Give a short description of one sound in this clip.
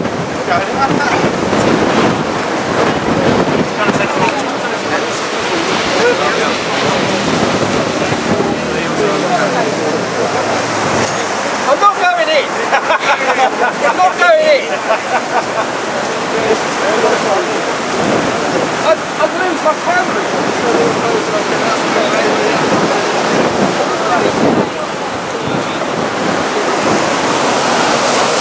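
A crowd of men and women talk and call out nearby.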